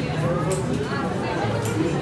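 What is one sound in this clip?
Metal tongs clink against a tray.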